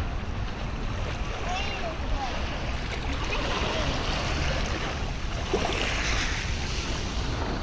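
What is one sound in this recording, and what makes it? Wind blows outdoors.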